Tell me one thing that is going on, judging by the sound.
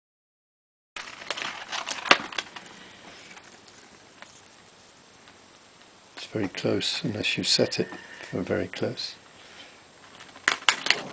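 Paper rustles and crinkles up close.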